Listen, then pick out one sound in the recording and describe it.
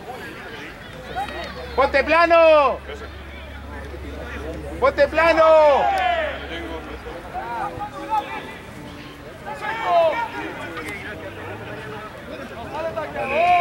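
A crowd of men and women shouts and cheers loudly outdoors.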